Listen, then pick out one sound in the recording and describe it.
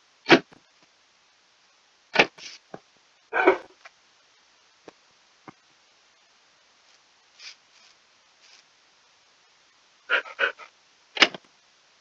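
A dog pants softly.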